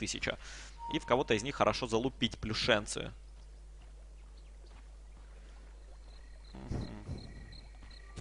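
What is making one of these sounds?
A man commentates with animation through a microphone.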